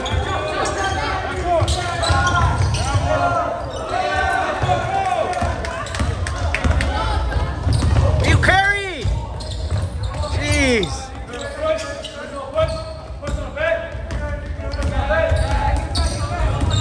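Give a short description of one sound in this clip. Players and spectators call out in a large echoing gym.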